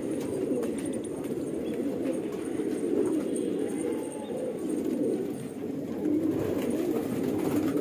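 Pigeons coo softly in a steady low murmur.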